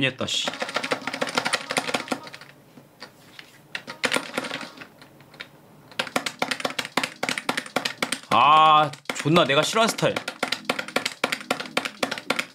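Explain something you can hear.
Buttons click on a rhythm game controller.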